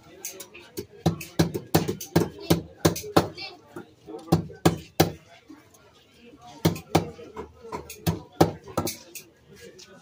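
A blade chops through fish on a wooden block with sharp knocks.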